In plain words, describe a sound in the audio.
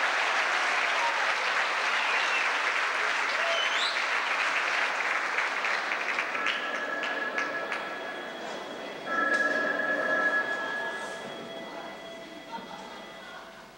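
A large crowd claps and cheers in a big hall, and the applause slowly fades.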